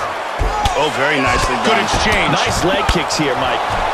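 Punches thud against bodies in a fighting game.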